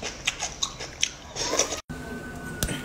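A young woman chews and slurps loudly close to a microphone.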